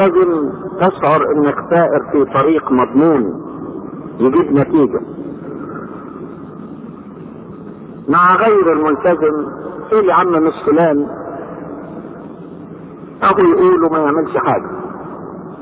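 An elderly man speaks slowly and calmly through a microphone, in bursts with long pauses.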